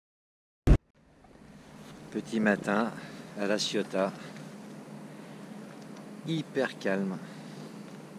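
Calm sea water laps softly against a moving boat.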